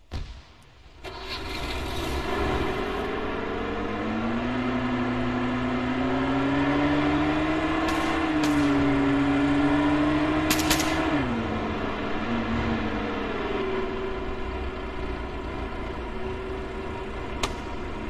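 A vehicle engine drones steadily, rising and falling slightly in pitch.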